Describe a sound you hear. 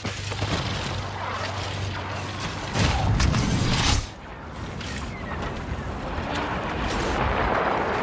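Laser blasts and explosions of a battle sound all around.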